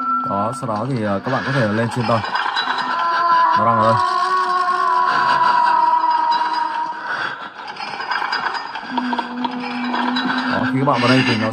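Eerie music plays from a tablet's speaker.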